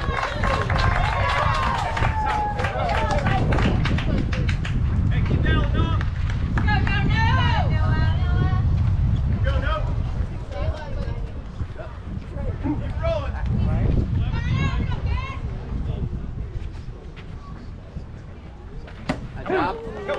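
Young players shout and cheer across an outdoor field.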